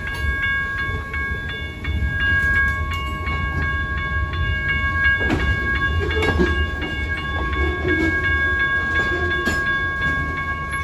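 A railroad crossing bell rings rapidly and steadily.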